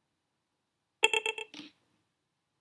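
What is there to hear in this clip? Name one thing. A computer alert chimes briefly.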